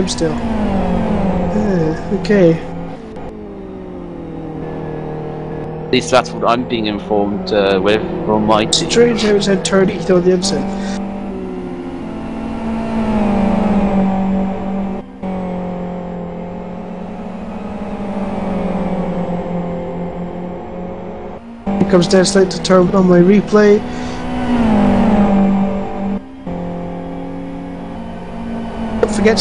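Race car engines roar and rev up and down.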